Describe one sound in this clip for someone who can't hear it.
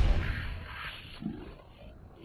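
A body falls onto wooden stairs.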